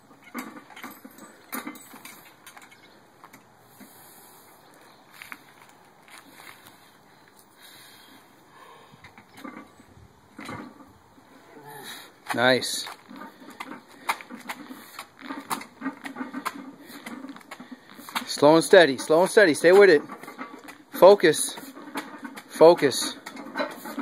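Heavy weight plates clank and rattle on a metal frame.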